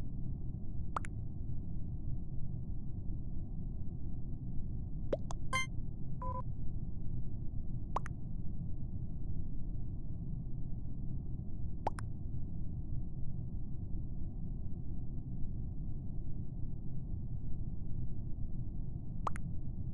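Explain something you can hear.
Short electronic clicks and blips sound from a game menu.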